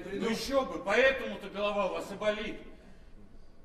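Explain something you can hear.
A man shouts loudly on a stage.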